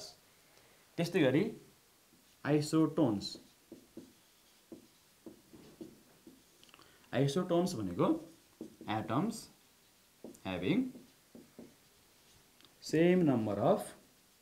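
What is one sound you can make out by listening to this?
A man speaks calmly and clearly, close by, in short phrases.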